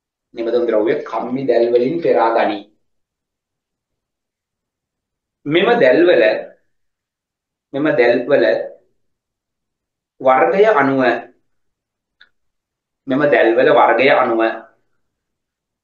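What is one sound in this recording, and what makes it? A young man reads aloud calmly through a microphone, in short phrases with pauses.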